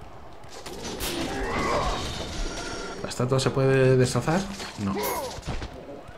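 Blades whoosh and strike with sharp metallic hits.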